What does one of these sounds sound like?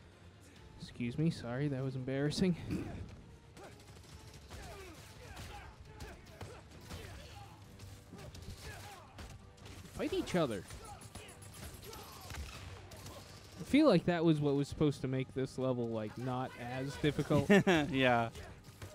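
Men talk with animation over microphones, close by.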